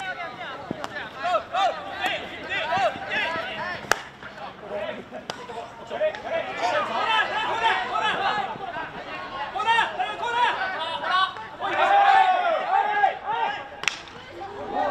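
Hockey sticks crack sharply against a ball outdoors.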